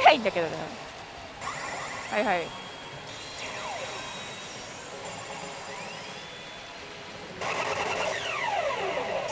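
A pachinko machine plays loud electronic music and sound effects.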